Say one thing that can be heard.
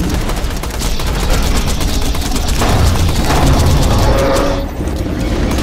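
Explosions boom in deep rumbling blasts.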